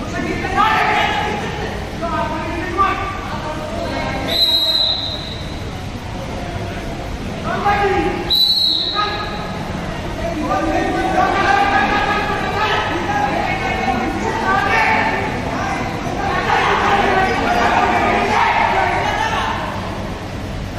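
Men shout and cheer encouragement in an echoing hall.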